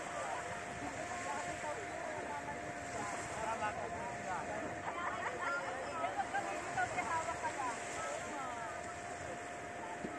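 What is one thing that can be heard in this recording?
Small waves wash gently onto the sand.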